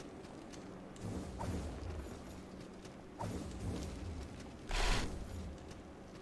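Magic spells whoosh and burst in loud blasts.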